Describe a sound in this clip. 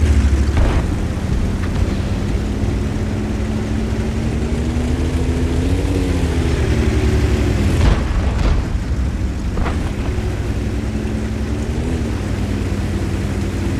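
A heavy tank engine rumbles and whines steadily.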